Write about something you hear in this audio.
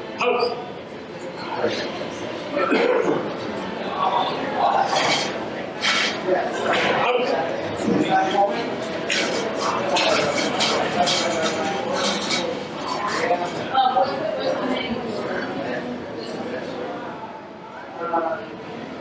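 A man calls out commands loudly in an echoing room.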